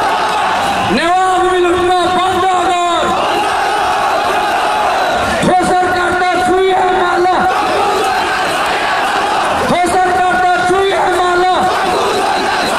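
A large crowd chants slogans in unison outdoors.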